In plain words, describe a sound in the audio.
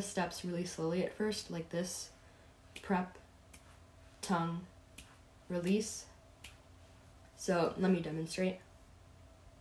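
A young woman speaks calmly and clearly, close by.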